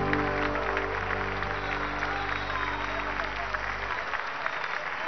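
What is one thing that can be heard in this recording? A band plays a slow sustained chord through loudspeakers outdoors.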